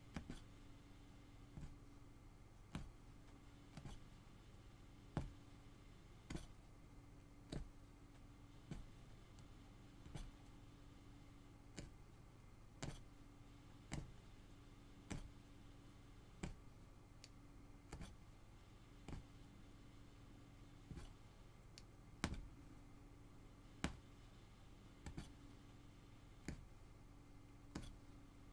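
A punch needle tool pokes through taut fabric with soft regular thumps.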